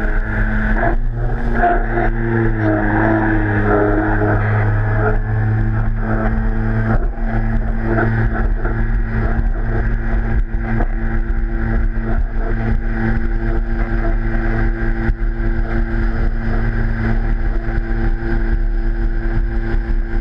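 A jet ski engine drones steadily at close range.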